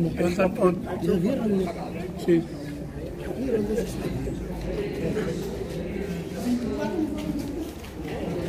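Several men talk nearby at once, their voices overlapping.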